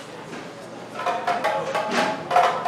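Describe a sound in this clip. Hand drums are beaten in a quick rhythm.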